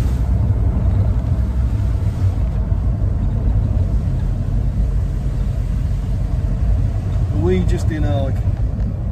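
A car engine rumbles low and steady from inside the cabin.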